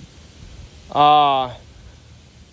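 A young man close by lets out a short, loud, drawn-out call.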